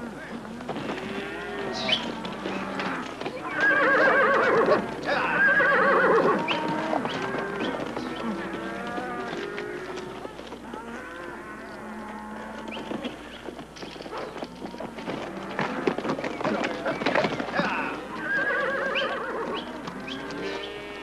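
Cattle low loudly.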